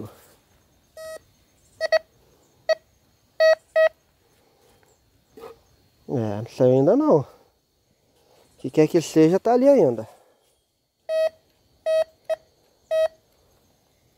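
A metal detector gives short, sharp beeps, again and again.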